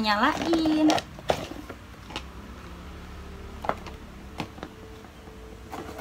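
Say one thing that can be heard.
Cardboard packaging rustles and taps as it is handled.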